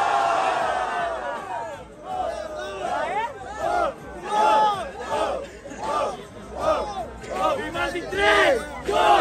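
A young man raps loudly and rhythmically outdoors.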